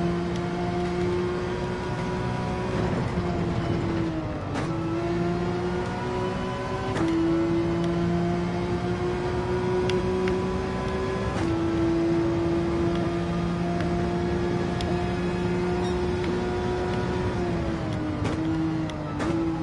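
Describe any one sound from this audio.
A racing car engine roars at high revs, with sudden pitch jumps at gear changes.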